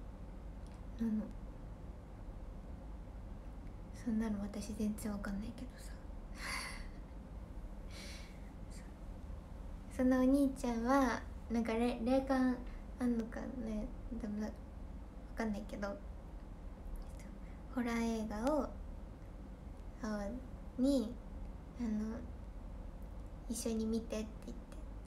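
A young woman talks casually and close to the microphone, with pauses.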